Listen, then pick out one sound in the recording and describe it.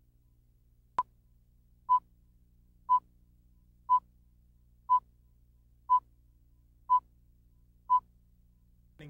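Short, even beeps sound once a second.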